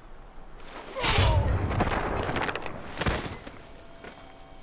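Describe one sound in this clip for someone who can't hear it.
Blows thud in a close fight.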